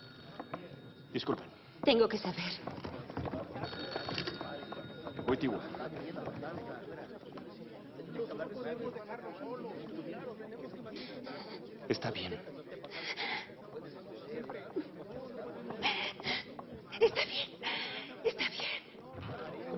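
A crowd of young people murmurs in a large room.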